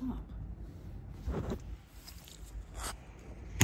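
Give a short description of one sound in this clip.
Fingers rub and knock against the microphone, close up.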